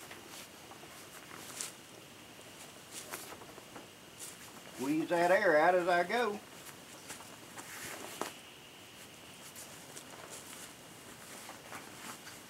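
Fabric rustles as it is folded and smoothed.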